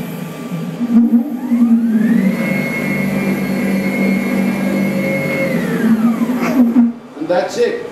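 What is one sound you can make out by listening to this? A machine's motors whine as its carriage moves, rising in pitch, holding steady, then falling away.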